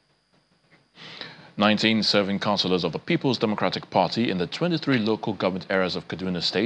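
A man speaks clearly and steadily, like a news presenter.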